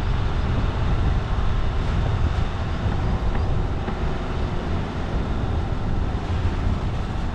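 A vehicle engine rumbles steadily while driving slowly.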